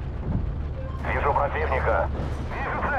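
A shell explodes nearby with a loud crash.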